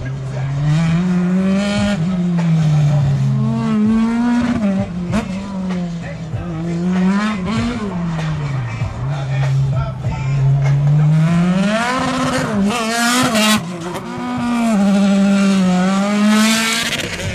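A race car engine revs hard, rising and falling again and again as the car speeds past close by.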